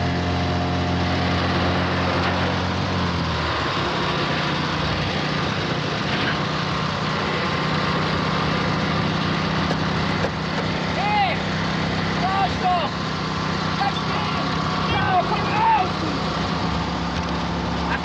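A small car engine drones along.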